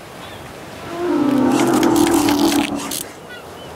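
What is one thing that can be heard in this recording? A large beast lets out a long, deep roar.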